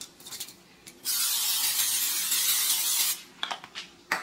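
An aerosol can of cooking oil sprays with a hiss into an air fryer basket.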